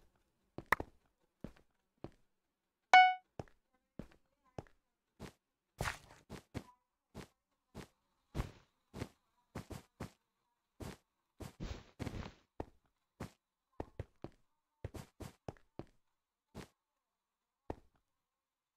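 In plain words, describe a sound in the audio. Footsteps tap quickly across blocks in a video game.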